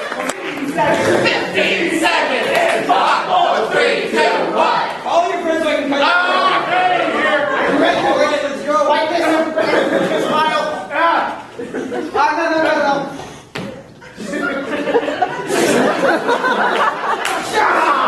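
Young men shout with animation on a stage in an echoing hall.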